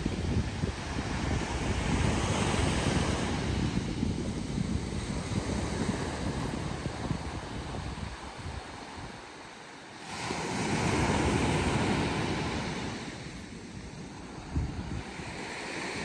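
Waves wash and break steadily on a shore.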